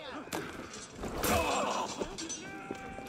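Swords clash in a scuffle.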